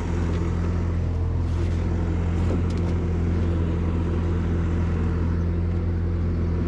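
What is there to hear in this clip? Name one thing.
A machine's engine idles nearby with a steady low hum.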